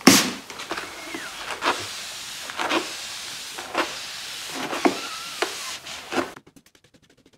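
A cloth rubs and squeaks across a wet glass surface.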